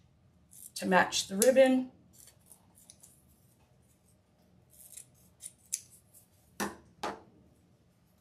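Scissors snip through ribbon.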